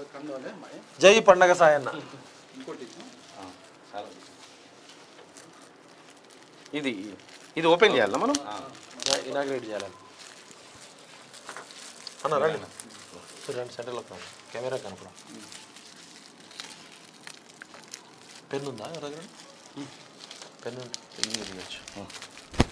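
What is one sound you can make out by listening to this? Several men talk nearby in short bursts.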